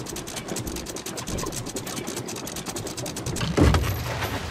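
A ship's anchor winch clicks rapidly as it turns.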